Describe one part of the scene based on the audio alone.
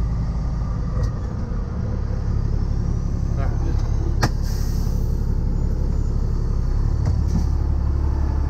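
Clicks and rattles come now and then inside the truck's cab.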